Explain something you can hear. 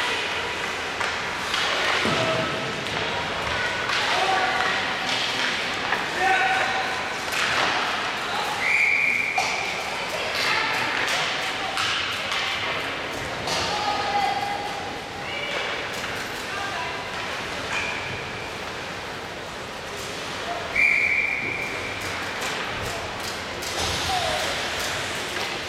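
Young players shout to each other across the ice.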